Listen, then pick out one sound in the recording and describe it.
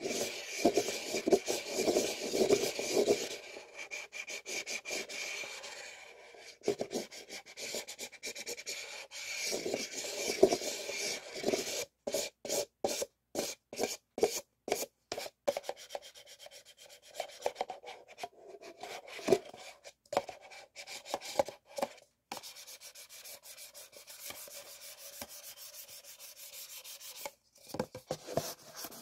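Paper cups rub and scrape against each other close by.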